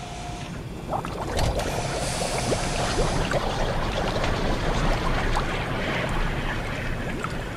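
Thick liquid bubbles and churns loudly close by.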